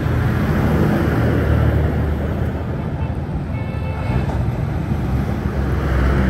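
A motorcycle engine putters past close by.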